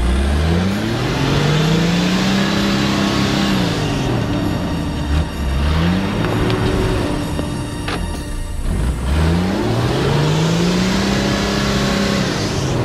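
A vehicle engine revs hard, rising and falling in pitch as it strains.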